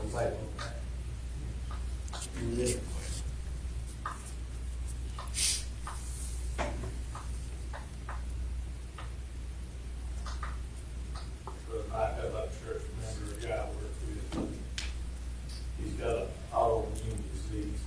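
A man speaks calmly from a distance in a room with a slight echo.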